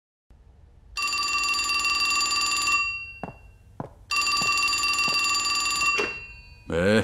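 A telephone rings loudly in two long bursts.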